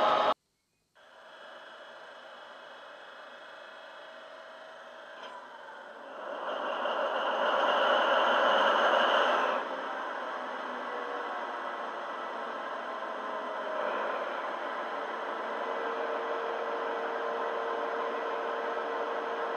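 A diesel engine idles with a steady hum.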